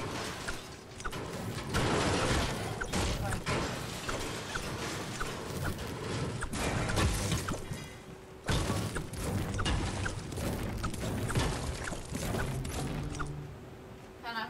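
Pickaxe blows clang and thud against walls and objects.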